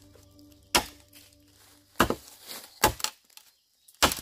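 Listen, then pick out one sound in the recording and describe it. A machete chops into a bamboo stalk with sharp knocks.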